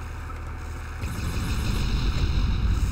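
Fireballs explode with a low, rumbling roar.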